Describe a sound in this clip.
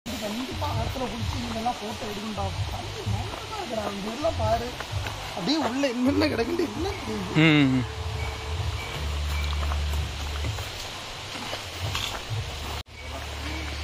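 Footsteps crunch on dry leaves and earth.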